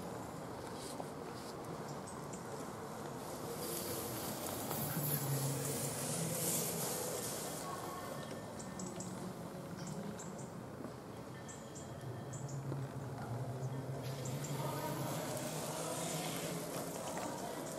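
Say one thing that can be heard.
Bicycle tyres roll and crunch over a muddy track.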